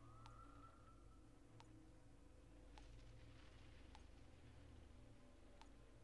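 Short menu clicks tick at a steady pace.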